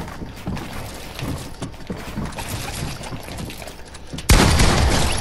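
Game building pieces snap into place with quick, repeated clacks.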